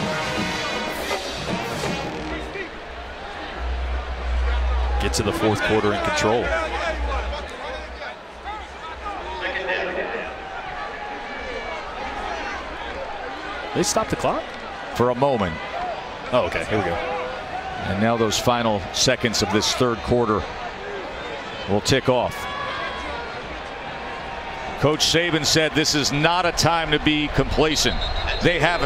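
A large stadium crowd roars and cheers in the open air.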